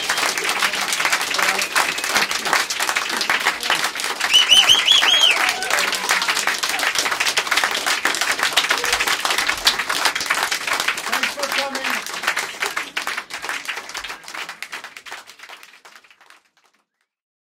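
A crowd applauds loudly in a small room and slowly fades out.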